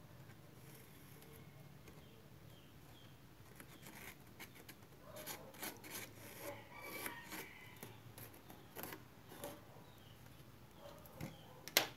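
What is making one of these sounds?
A felt-tip marker squeaks as it draws on a surface.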